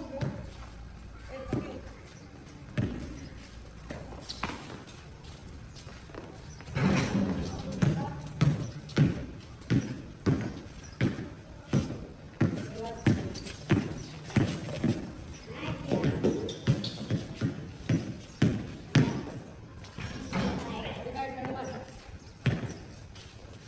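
A basketball bounces hard on a concrete court.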